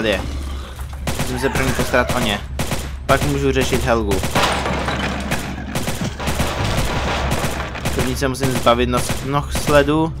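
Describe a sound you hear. A rifle fires rapid shots in quick bursts.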